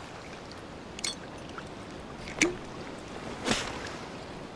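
A glass bottle clinks sharply a few times.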